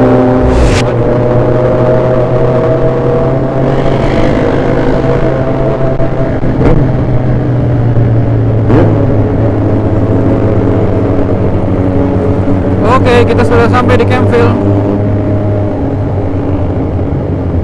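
A motorcycle engine hums steadily up close as the bike rides along.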